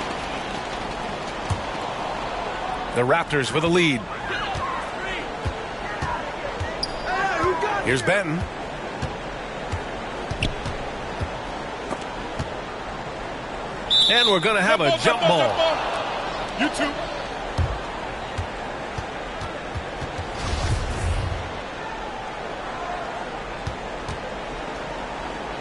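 A crowd murmurs steadily in a large echoing arena.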